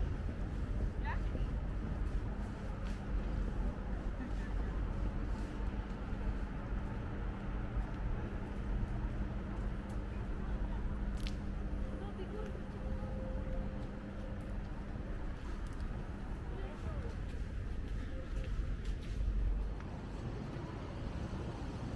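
People walk by on a paved path outdoors.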